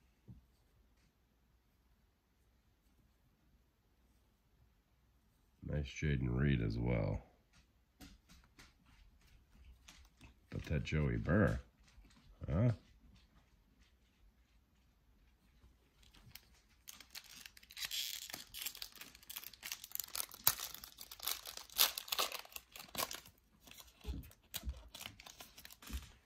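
Gloved hands shuffle and set down trading cards with soft slaps.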